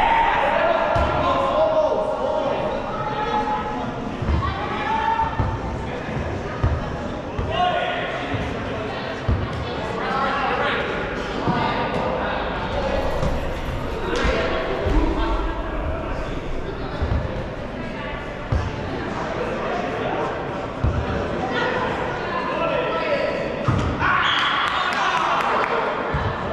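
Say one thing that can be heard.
Several men and women call out and chatter with animation across a large echoing indoor hall.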